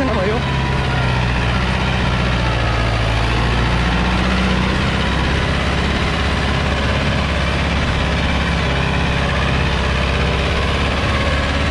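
A disc harrow churns through loose soil.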